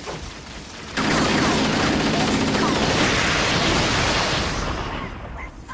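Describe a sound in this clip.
Rapid bursts of gunfire crackle loudly.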